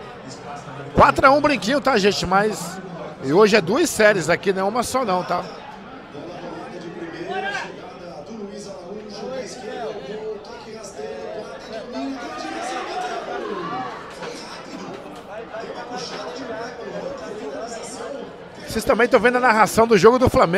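A crowd of men shouts and cheers loudly in an echoing room.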